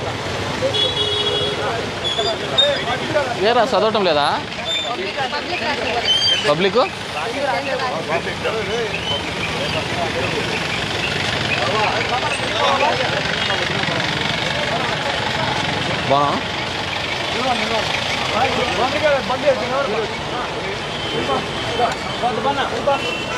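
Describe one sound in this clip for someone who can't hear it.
A crowd of men talk over one another nearby, outdoors.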